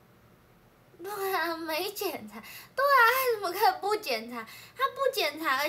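A young woman speaks softly and playfully close by.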